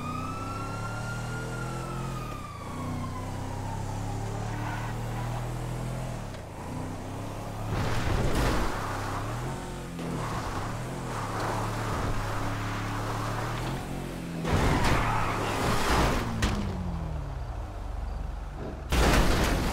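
A pickup truck's engine hums steadily and revs as it drives.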